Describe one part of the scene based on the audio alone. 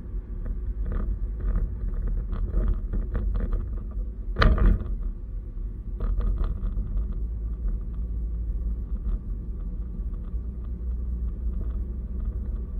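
A car drives along a road with a low, steady rumble.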